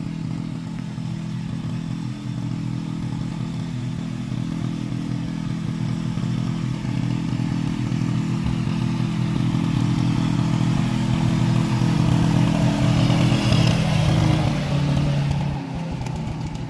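A tractor engine rumbles steadily and grows louder as it approaches.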